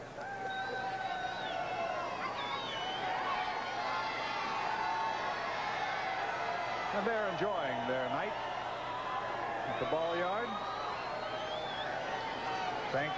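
Fans whistle loudly in a crowd.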